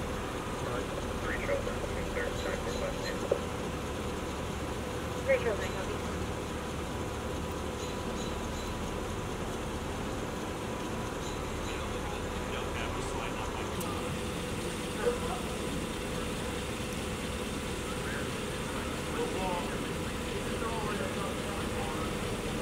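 Vehicle engines idle steadily nearby.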